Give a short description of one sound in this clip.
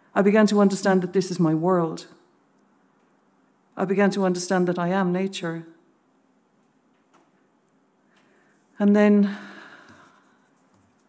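A woman sings in long, wavering wails nearby.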